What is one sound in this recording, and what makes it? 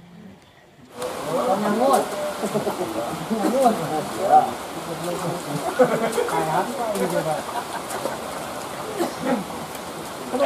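Men talk and call out outdoors at a distance.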